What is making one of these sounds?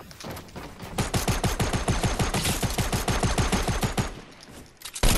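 Wooden building pieces clack rapidly into place, one after another.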